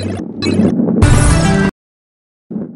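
A short, bright burst of sound rings out as a level is finished.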